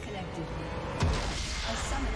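A game's crystal explodes with a loud blast.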